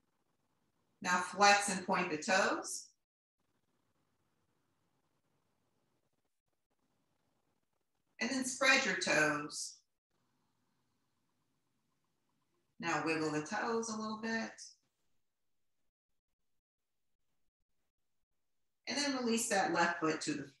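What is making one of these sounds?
A woman speaks calmly in short phrases, close by, with pauses in between.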